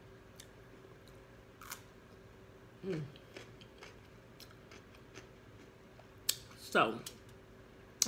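A woman crunches on a cucumber close to a microphone.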